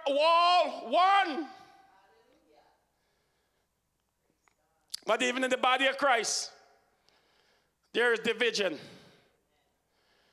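A man preaches forcefully into a microphone, his voice echoing in a large hall.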